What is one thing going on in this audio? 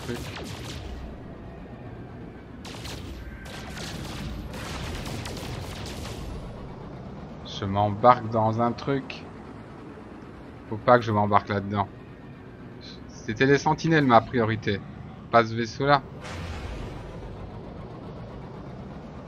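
A spaceship engine rumbles steadily.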